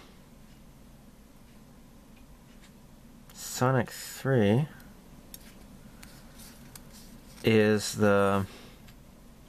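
A paper sticker rustles softly between fingers.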